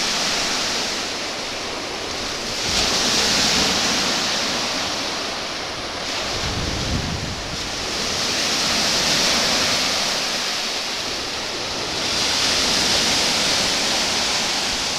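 Small waves wash gently onto a beach, swelling and fading in slow surges.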